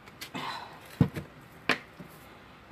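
A plastic bottle is set down with a knock on a table.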